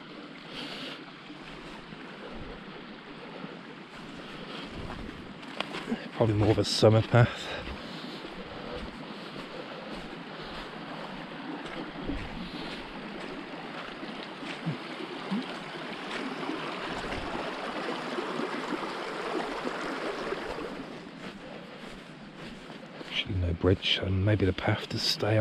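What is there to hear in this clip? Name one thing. Boots squelch through wet, boggy grass.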